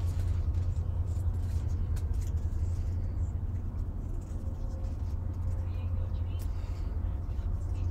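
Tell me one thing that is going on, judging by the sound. Paper tags rustle and tap as hands handle them.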